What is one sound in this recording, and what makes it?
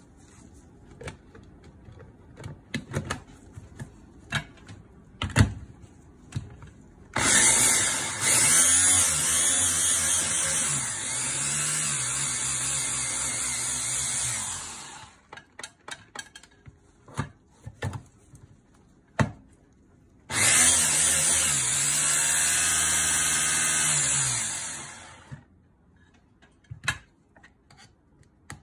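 Plastic parts click and clack as a chopper lid is fitted and removed.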